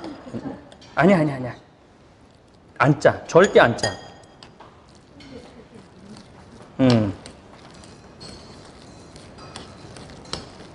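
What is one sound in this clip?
A spoon scrapes and clinks against a bowl while mixing food.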